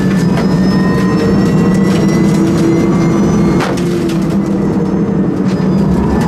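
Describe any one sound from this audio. A race car engine drones loudly from inside the cabin.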